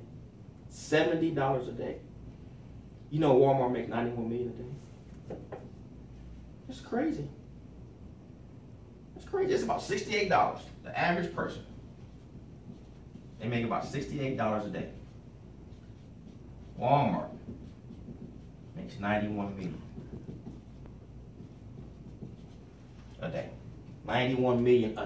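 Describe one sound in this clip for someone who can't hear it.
A man speaks calmly and clearly, pausing between phrases.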